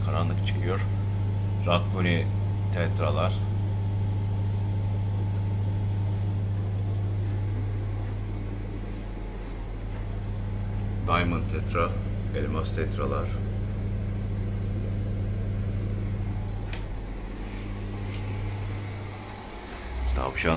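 An aquarium air pump hums steadily.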